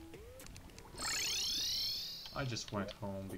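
A video game character teleports with a bright, shimmering magical chime.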